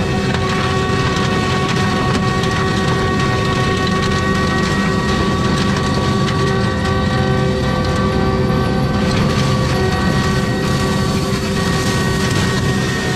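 A mulcher head whirs loudly as it shreds brush and wood.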